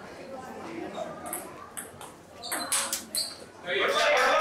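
A table tennis ball clicks sharply back and forth on paddles and the table.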